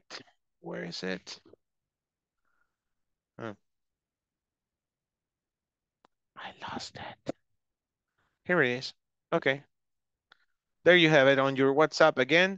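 Adults speak in short, calm turns over an online call.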